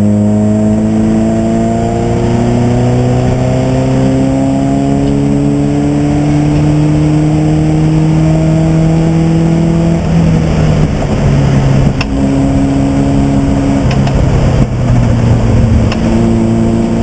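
A race car engine roars loudly from inside the cabin, its pitch slowly rising, then dropping and climbing again with gear changes.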